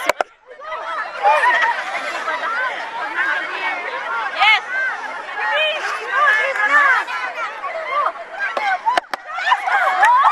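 A large crowd of women and men chatters and calls out loudly outdoors, close by.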